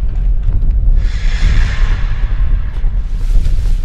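A magical shimmer swells and fades.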